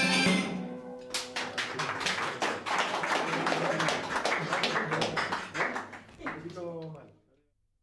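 A small group claps their hands.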